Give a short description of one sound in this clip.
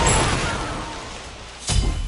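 A bright game chime rings out.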